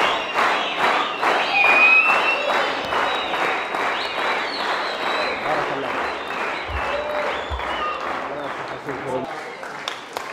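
A large crowd claps in rhythm in an echoing hall.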